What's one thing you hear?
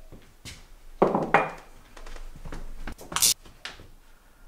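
A ceramic mug is set down on a wooden counter with a knock.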